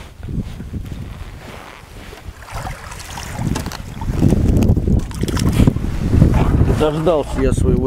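Water splashes and sloshes against a boat as a net is pulled through it.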